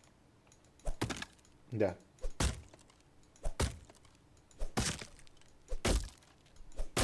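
An axe chops into wood with sharp thuds.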